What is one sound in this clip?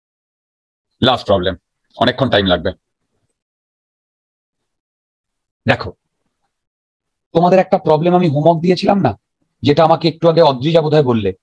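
A man explains calmly through a close microphone, in short bursts with pauses.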